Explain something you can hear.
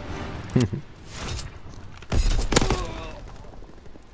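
Gunfire cracks in sharp bursts.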